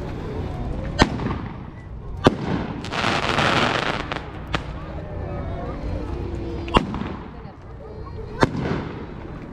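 Fireworks bang loudly outdoors, with echoes.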